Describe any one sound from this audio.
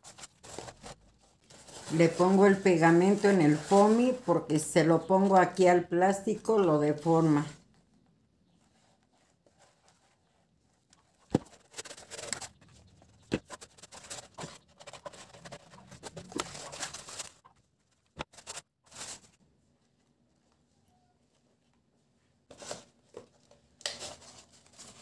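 Stiff paper rustles and flaps as it is handled.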